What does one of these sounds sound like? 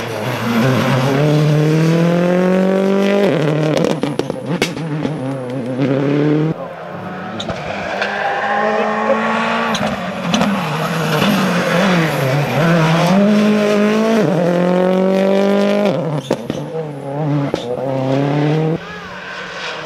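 A rally car engine roars at high revs, shifting gears as it races past.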